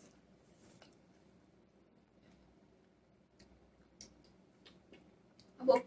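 A young woman chews juicy mango with soft wet smacking sounds.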